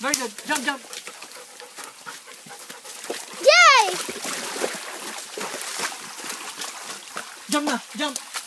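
A dog barks and yelps nearby.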